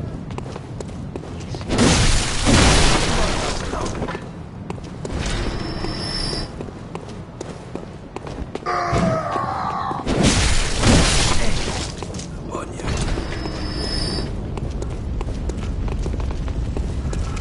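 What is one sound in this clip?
Heavy footsteps run on cobblestones.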